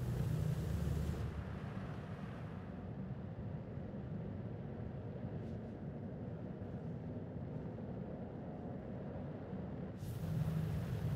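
A spacecraft's engines hum with a low, steady rumble.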